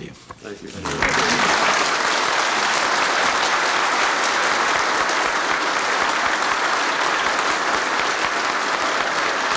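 A crowd applauds loudly in a large room.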